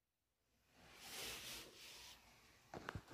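A man whispers softly up close.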